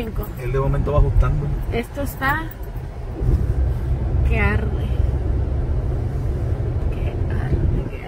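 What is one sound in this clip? A car engine hums with a low rumble, heard from inside the car.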